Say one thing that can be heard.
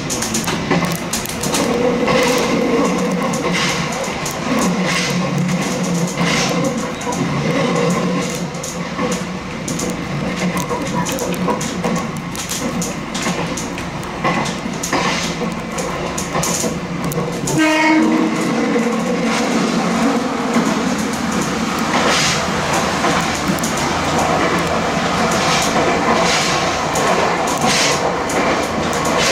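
Train wheels clack over rail joints again and again.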